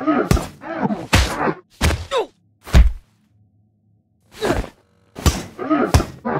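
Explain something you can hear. Heavy blows clang against metal.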